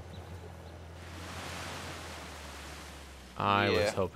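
Water splashes under tyres driving through a stream.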